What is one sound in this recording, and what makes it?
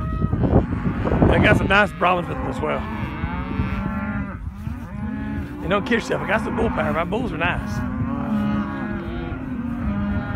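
A herd of cattle moos and bellows loudly outdoors.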